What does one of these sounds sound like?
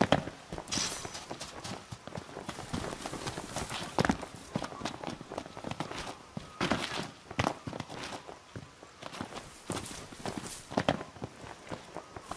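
Footsteps crunch on sand and grass as a man runs.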